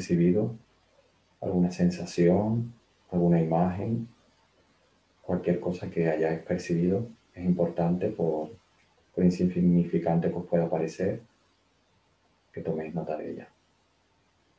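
A young man speaks calmly through a webcam microphone.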